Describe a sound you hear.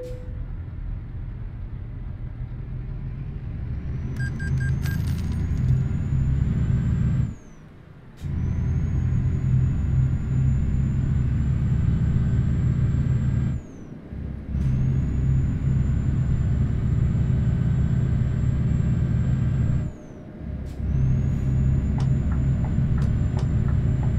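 A heavy truck engine rumbles low and steady, dropping away briefly at each gear change.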